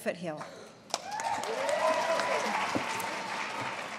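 Women laugh together.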